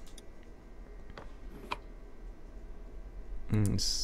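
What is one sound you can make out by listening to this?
A drawer slides open.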